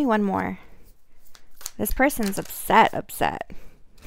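A deck of cards is shuffled.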